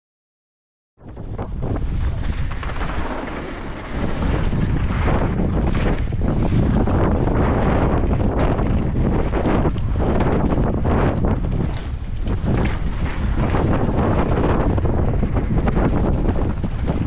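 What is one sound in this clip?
Wind rushes loudly past a fast-moving bike rider outdoors.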